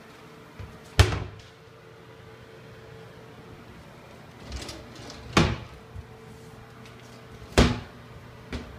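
Wooden cabinet doors knock and bang as they swing open.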